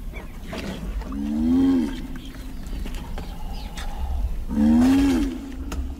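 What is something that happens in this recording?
A giant tortoise groans loudly in long, rising and falling bellows.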